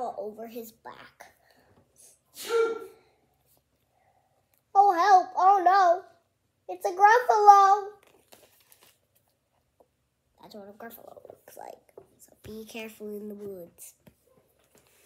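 A young girl speaks close by, with animation, in bursts.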